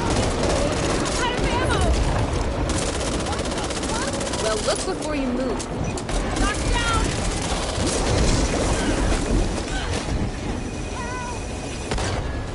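Monsters growl and screech.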